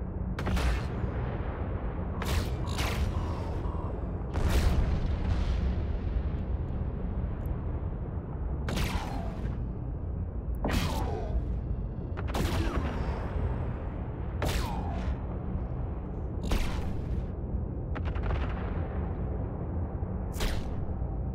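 A spaceship's laser weapons fire in bursts.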